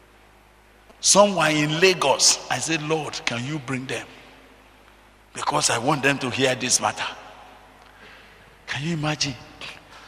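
An older man preaches with animation into a microphone, in bursts with pauses.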